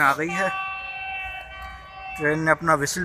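A train horn sounds far off.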